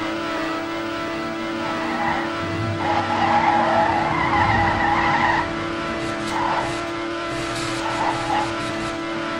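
A video game race car engine whines at high speed.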